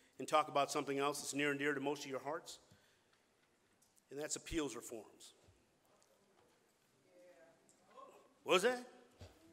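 A man speaks into a microphone in measured bursts with pauses, his voice carried through a loudspeaker.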